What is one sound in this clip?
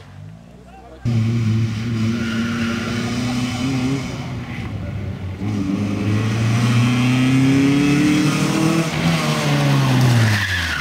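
A car engine revs loudly as the car approaches, rising and falling in pitch.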